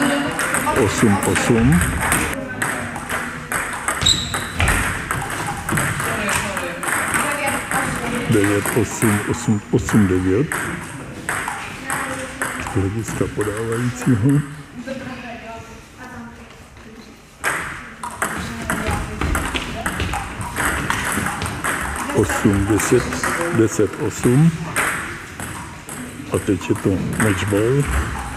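A table tennis ball clicks back and forth on paddles and a table in an echoing hall.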